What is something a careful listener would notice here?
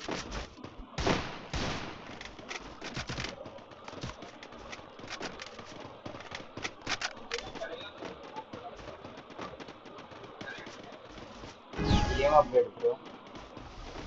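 Footsteps thud quickly on grass as a game character runs.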